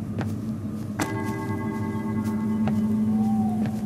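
A bright chime rings out as an item is picked up.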